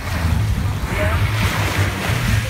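Shallow water splashes close by as a woman wades and scoops.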